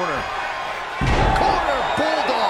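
A wrestler slams onto a wrestling ring mat with a heavy thud.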